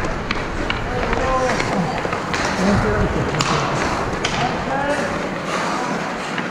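Young men call out to each other in a large echoing rink.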